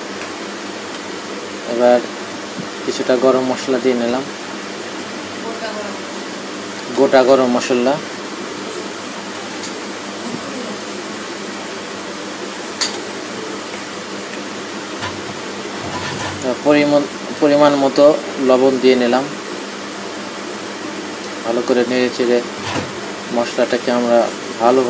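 Food sizzles gently in a hot pan.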